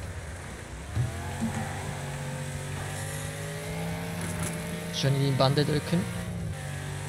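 Car bodies bang and scrape against each other.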